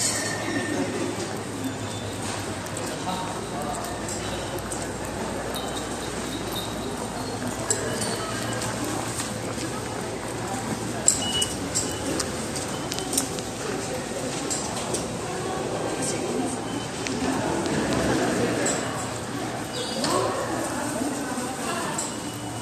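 Footsteps echo in a large hall.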